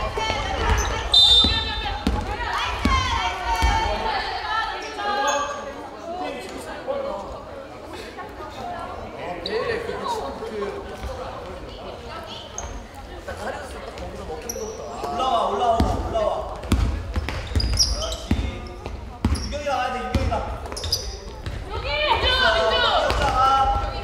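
Young women shout and call out to each other in a large echoing gym.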